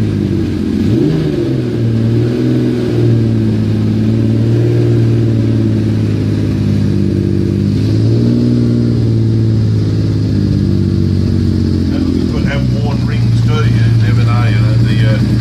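A motorcycle engine idles with a steady, deep rumble and revs up and down now and then.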